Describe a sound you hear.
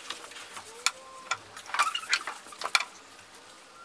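Wooden blocks clack softly as they are stacked one on another.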